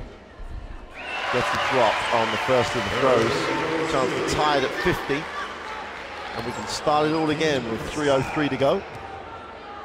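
A crowd in a large echoing arena cheers loudly.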